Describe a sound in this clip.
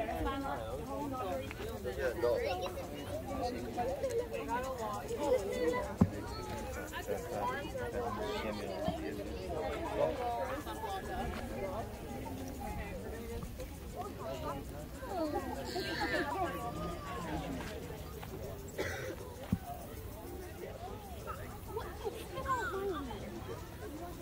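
Adults and children chatter nearby outdoors.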